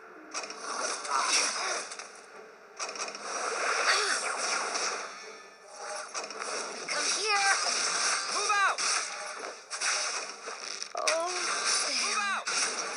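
Swords clash and magic blasts burst in a fast battle.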